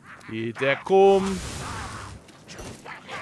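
A fiery blast roars and crackles.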